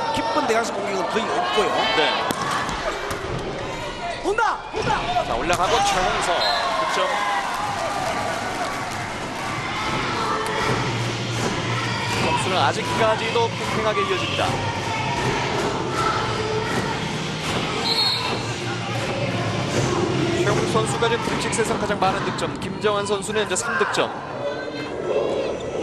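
A large crowd cheers and chants loudly in an echoing hall.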